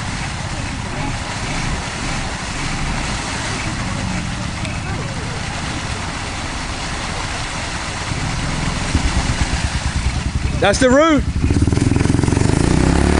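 Water splashes and churns around tyres.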